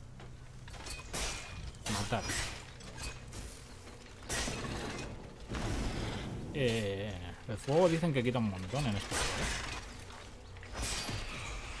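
Metal blades swish and strike in a fight.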